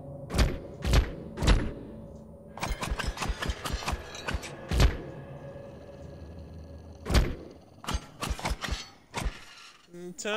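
Short menu clicks and whooshes sound as selections change.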